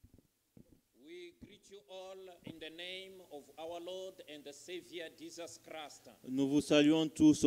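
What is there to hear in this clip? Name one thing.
A man sings through a microphone in an echoing hall.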